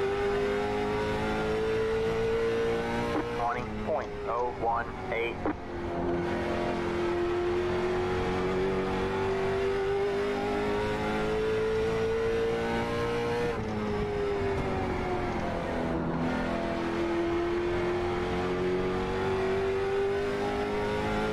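A race car engine drones steadily at high revs, dropping in pitch when slowing and then climbing again.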